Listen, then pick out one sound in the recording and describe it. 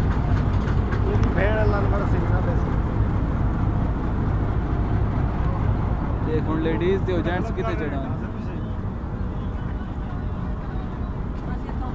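A crowd of men chatter nearby outdoors.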